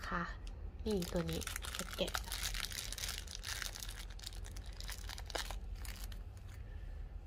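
Plastic wrapping crinkles and rustles as hands unwrap it.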